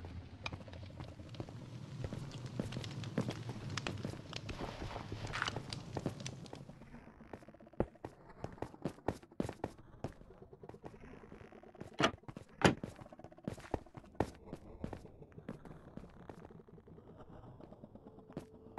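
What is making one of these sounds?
Blocks knock softly as they are placed and broken.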